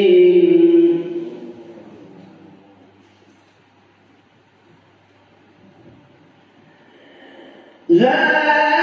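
A man chants melodically through a loudspeaker, echoing in a large room.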